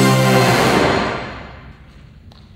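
A brass band plays loudly in a hall.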